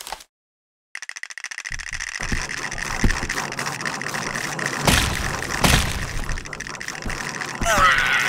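Skulls clatter and thud against a doll.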